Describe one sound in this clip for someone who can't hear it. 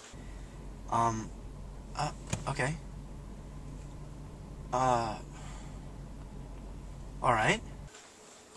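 Another young man speaks briefly and quietly into a phone.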